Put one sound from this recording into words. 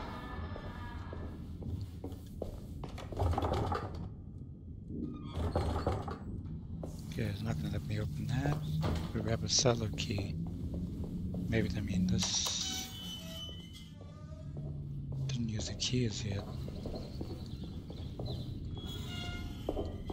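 Footsteps walk slowly on a hard stone floor.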